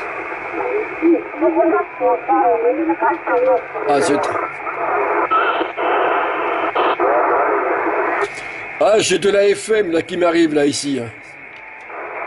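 A man's voice comes through a radio loudspeaker, crackly and thin.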